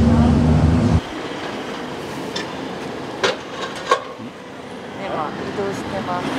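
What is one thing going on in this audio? A young woman talks close by, outdoors.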